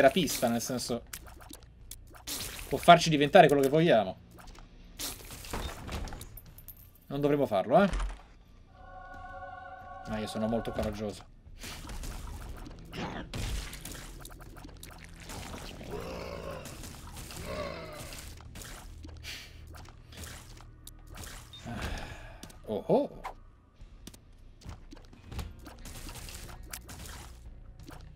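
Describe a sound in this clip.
Game sound effects pop and splatter rapidly.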